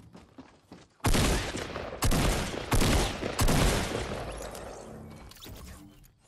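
Gunshots fire in quick bursts, loud and close.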